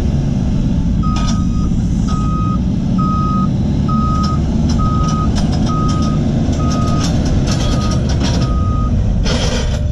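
A reversing alarm beeps in an even rhythm.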